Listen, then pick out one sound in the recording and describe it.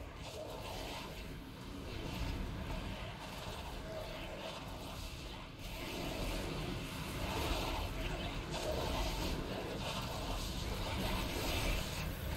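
Magic lightning crackles and zaps in a game battle.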